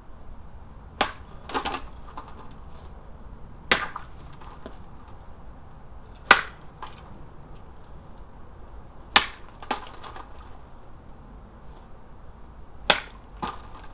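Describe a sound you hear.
A sword blade strikes a plastic jug with a sharp thwack.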